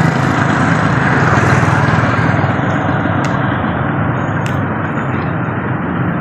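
A motorbike engine putters past.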